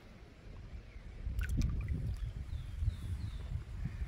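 Water splashes softly as a fish slips back into a river.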